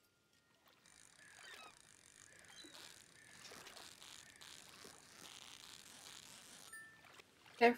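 A video game fishing reel whirs steadily.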